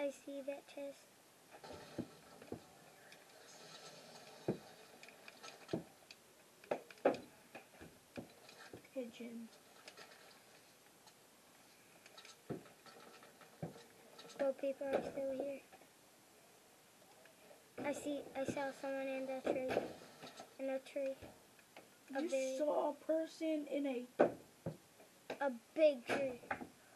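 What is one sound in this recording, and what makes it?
Clicks and clatters from a game sound through a television speaker.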